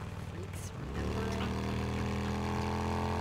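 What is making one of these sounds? A motorcycle engine revs louder.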